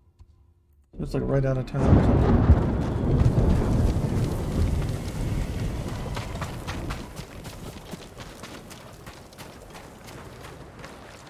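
Footsteps splash as a person runs across wet ground.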